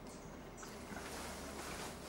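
A small bird beats a moth against a branch with soft taps.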